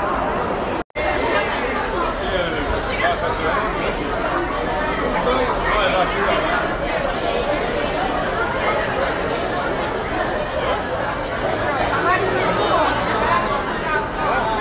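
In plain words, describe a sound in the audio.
A crowd of young people chatters and cheers around.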